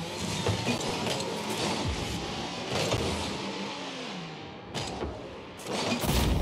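Car engines hum and rev.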